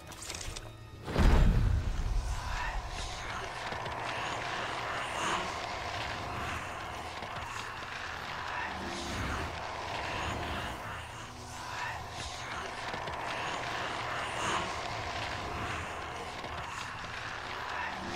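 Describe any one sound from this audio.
A glowing creature hums and crackles eerily.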